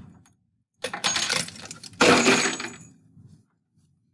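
Dry spaghetti snaps and clatters onto a table.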